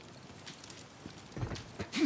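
A fire crackles in a metal barrel.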